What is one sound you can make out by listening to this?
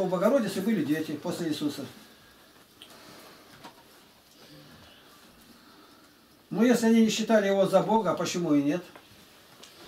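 An elderly man speaks calmly and up close, pausing between phrases.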